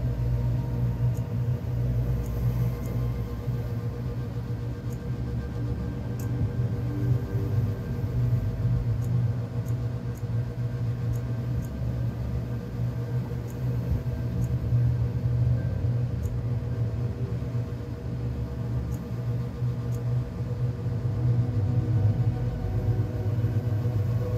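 Soft electronic menu ticks sound as options are scrolled through.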